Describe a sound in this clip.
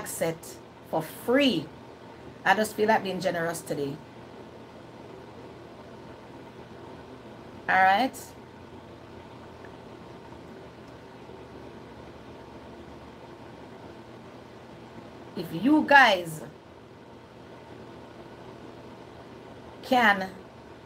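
A middle-aged woman speaks calmly and close up, in short bursts with long pauses.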